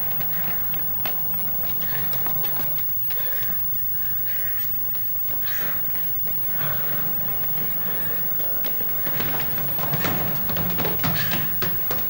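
Footsteps hurry along a hard floor.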